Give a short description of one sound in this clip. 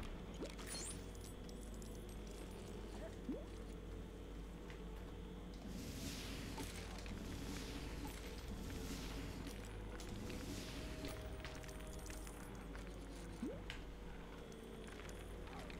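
Small coins jingle as they are picked up.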